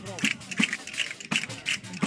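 A tambourine jingles and thumps in time.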